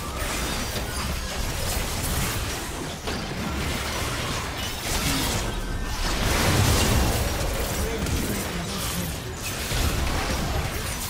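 Spell effects whoosh, crackle and blast during a fast fight.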